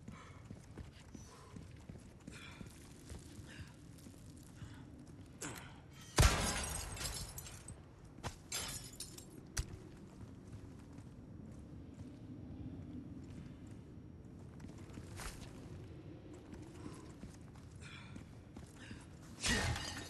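Footsteps crunch on rubble and stone.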